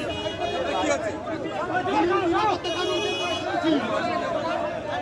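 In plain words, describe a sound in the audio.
A crowd of men talk and shout loudly outdoors.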